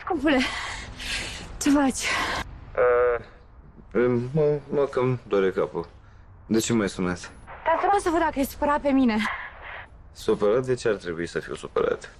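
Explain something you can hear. A woman talks into a phone with animation.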